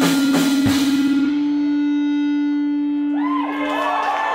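An electric guitar rings out with a loud sustained note.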